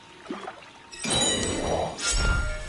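Water sloshes and splashes with swimming strokes.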